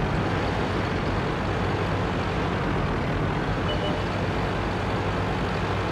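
Branches rustle and snap as a tank pushes through bushes.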